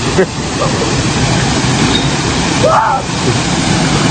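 A man splashes into water.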